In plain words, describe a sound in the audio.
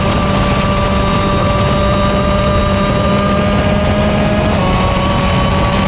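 A kart engine whines loudly and steadily close by, dropping slightly in pitch near the end.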